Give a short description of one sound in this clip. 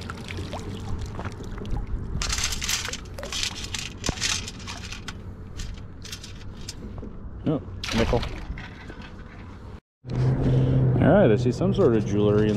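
Pebbles rattle and clink in a metal scoop.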